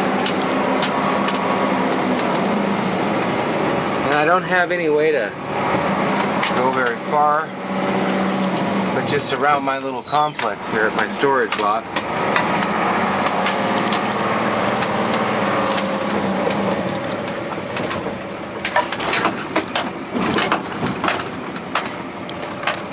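A vehicle engine hums steadily while driving slowly.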